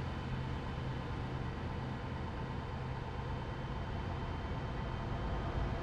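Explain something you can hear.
A passing truck rushes by close alongside.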